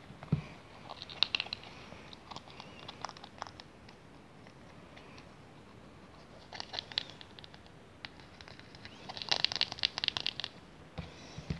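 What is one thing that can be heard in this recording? A plastic lid crinkles and taps as fingers handle it.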